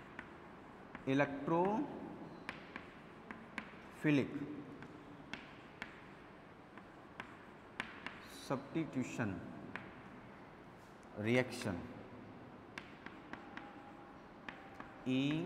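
A young man speaks calmly in short phrases, close by in a slightly echoing room.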